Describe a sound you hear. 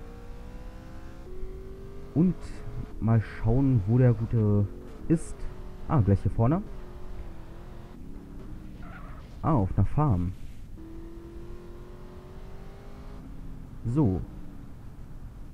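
A car engine hums steadily as it drives over rough ground.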